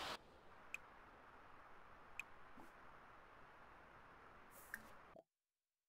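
Soft clicks sound as menu options are picked.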